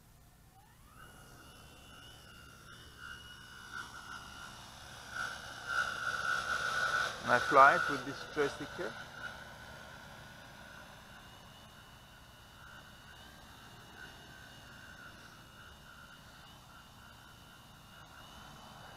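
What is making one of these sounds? A small drone's motors whine steadily as it lifts off and hovers nearby.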